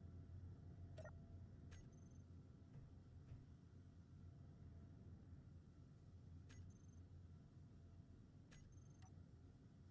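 Soft interface clicks sound as menus open and close.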